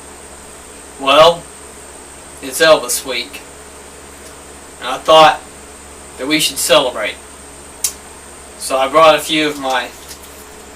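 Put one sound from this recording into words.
A young man speaks calmly in short phrases close to the microphone.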